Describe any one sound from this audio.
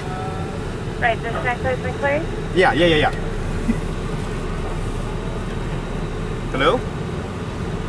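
A young man speaks up close, calmly.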